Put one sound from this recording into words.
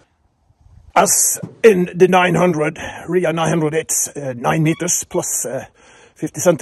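A middle-aged man speaks calmly and close up.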